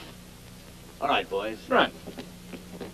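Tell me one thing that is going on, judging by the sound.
A man speaks briefly and loudly.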